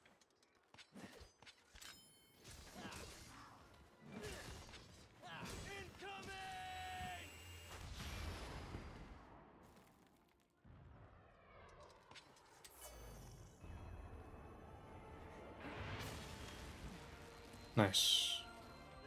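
Sword blows strike with sharp impacts.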